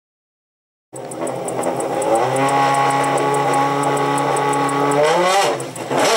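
A race car engine idles with a loud, steady rumble.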